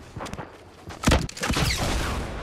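Gunfire bursts in rapid shots.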